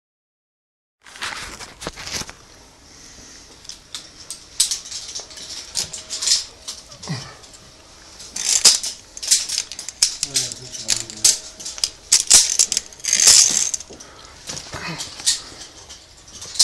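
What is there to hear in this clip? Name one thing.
Metal clips clink and scrape against a steel cable.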